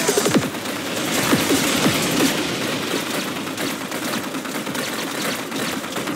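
Game turrets fire rapid laser shots and zaps.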